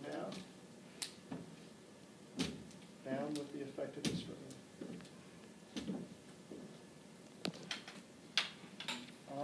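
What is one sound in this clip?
Crutches knock on wooden steps.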